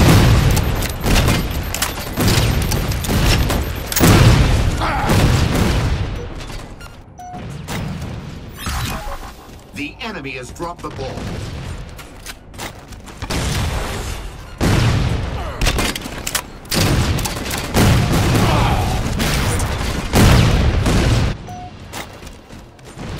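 Gunfire from a game rifle rattles in loud bursts.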